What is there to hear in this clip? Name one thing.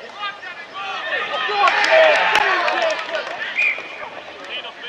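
A crowd of spectators cheers loudly, then quiets.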